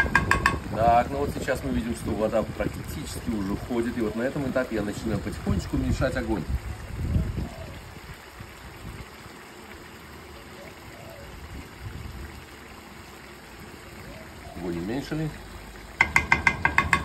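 Broth bubbles gently in a large pot.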